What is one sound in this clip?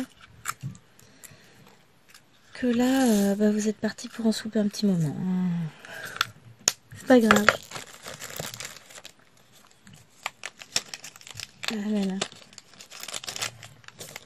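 Tiny plastic beads rattle and click in a tray.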